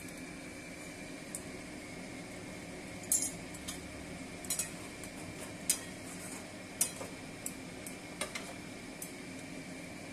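A metal spoon scrapes and clinks against a pan.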